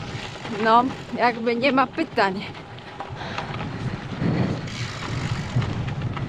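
Bicycle tyres crunch on gravel.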